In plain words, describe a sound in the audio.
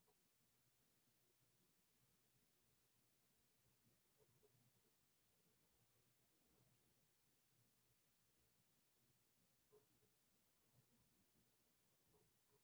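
A woman speaks quietly and calmly, a little way off.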